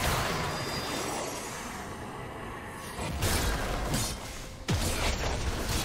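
Game spell effects whoosh and burst.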